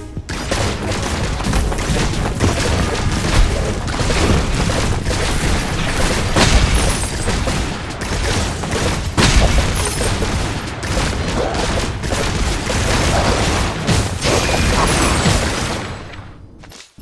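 Video game combat effects crash and whoosh rapidly as blows land.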